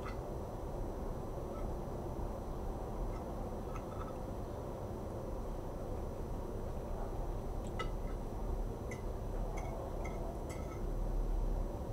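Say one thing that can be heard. Metal cutlery clinks and scrapes against a plate.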